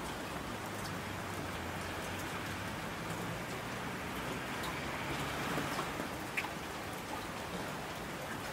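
Mountain streams rush and roar.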